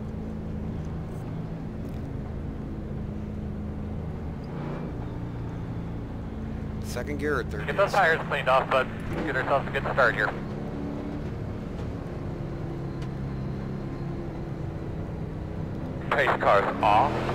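A race car engine idles with a low steady rumble.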